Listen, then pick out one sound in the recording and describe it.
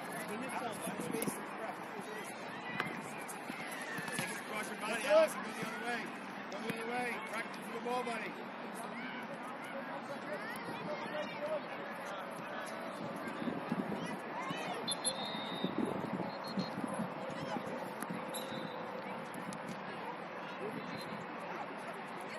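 Young players shout and call to each other across an open outdoor field.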